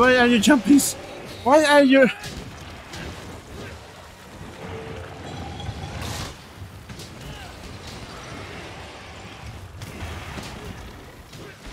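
Fiery blasts burst with loud bangs.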